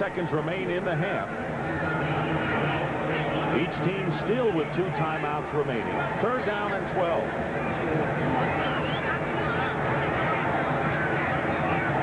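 A large stadium crowd murmurs and cheers in the distance.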